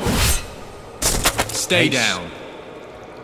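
A skeleton shatters into pieces.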